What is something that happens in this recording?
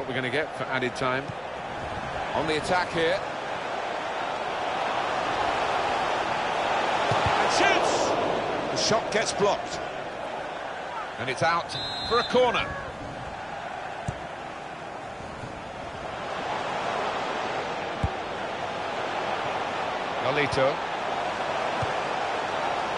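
A stadium crowd roars steadily, swelling and dipping.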